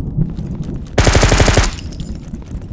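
Rapid gunfire rattles in a burst.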